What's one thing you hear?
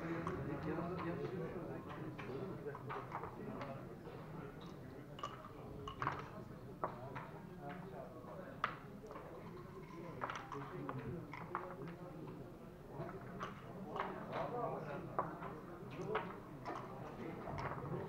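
Game pieces click as they are moved on a wooden board.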